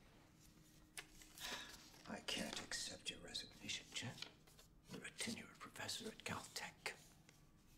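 An older man speaks calmly and firmly, close by.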